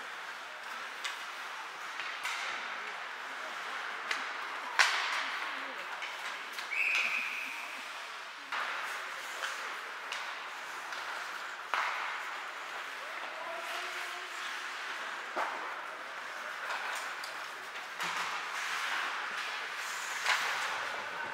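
Hockey sticks clack sharply against the puck in an echoing rink.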